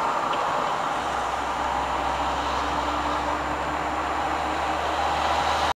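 A camper van's engine drones at cruising speed, heard from inside the cab.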